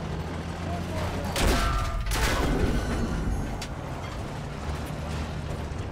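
A tank engine rumbles steadily with a deep drone.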